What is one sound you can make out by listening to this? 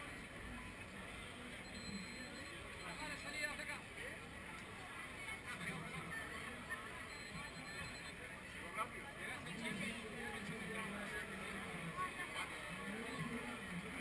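A crowd chatters and murmurs outdoors.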